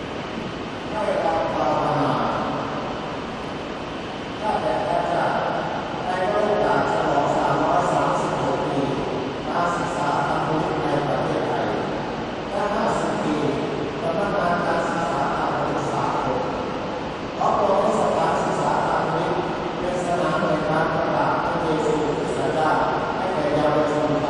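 A man chants into a microphone, heard through loudspeakers outdoors.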